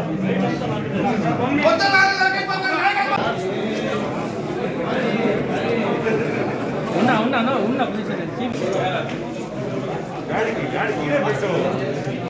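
A crowd of men talk and shout over one another in a busy, echoing room.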